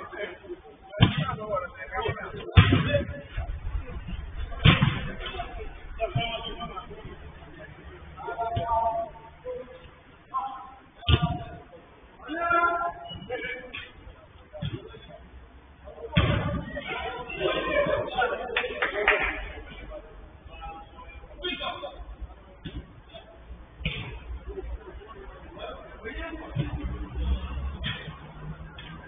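Young men shout and call out to each other from a distance.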